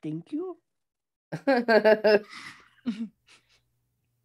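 A woman laughs heartily over an online call.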